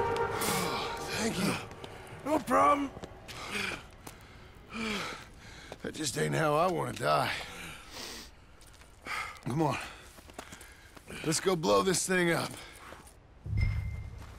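A man speaks calmly in a deep, gravelly voice.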